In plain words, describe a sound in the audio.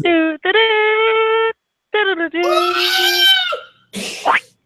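A young man sings out loudly and theatrically through an online call.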